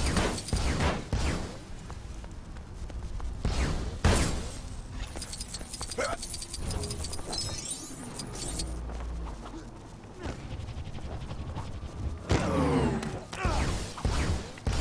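Electric lightning crackles and zaps.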